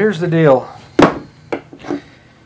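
A metal part knocks lightly against a hard rubber surface.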